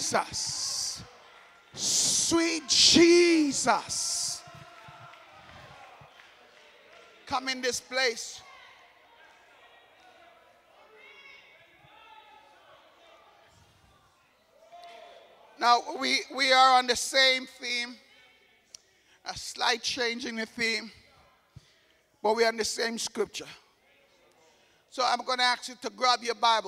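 A man preaches with animation into a microphone over loudspeakers in a large echoing hall.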